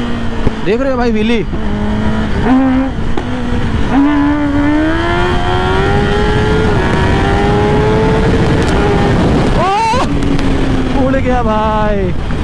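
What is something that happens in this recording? A sport motorcycle engine revs hard, rising in pitch through the gears and blipping on downshifts.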